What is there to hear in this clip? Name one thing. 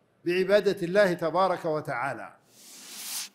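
An elderly man speaks solemnly into a microphone.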